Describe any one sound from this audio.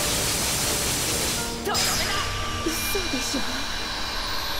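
Magic blasts whoosh and crackle in a video game battle.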